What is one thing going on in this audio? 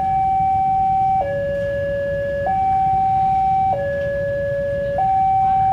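A train rumbles in the distance as it approaches.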